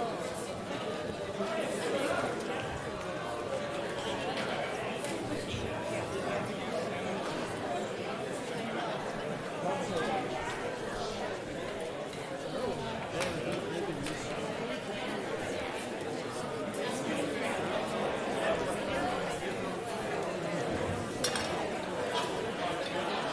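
A crowd of young people chatters and murmurs in a large echoing hall.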